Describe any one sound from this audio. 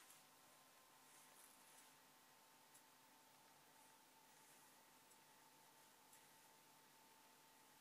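Fabric rustles softly under a hand.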